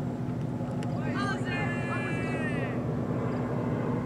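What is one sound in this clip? Men shout far off on an open field.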